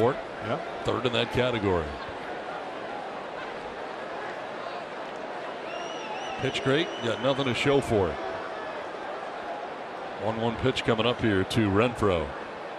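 A large crowd murmurs in an open-air stadium.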